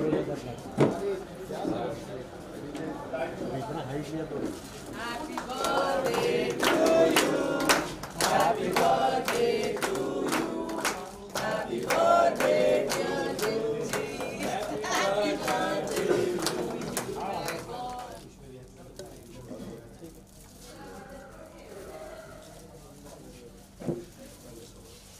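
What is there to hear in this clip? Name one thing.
A crowd of men and women chatters and cheers nearby.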